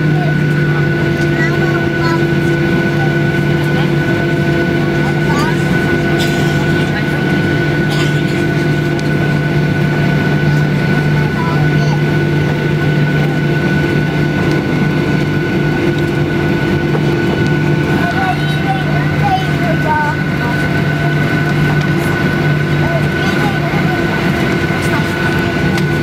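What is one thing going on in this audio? Jet engines hum loudly and steadily from inside an airliner cabin.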